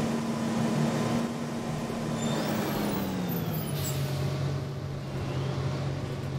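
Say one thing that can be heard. A bus engine hums steadily and its pitch slowly drops.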